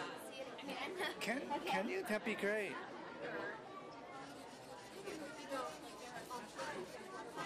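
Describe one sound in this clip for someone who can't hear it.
A young girl talks close by.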